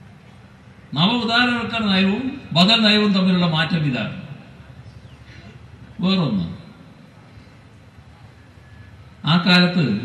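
An elderly man speaks forcefully into a microphone over a loudspeaker, pausing between phrases.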